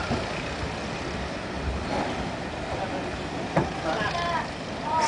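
A diesel train engine rumbles in the distance.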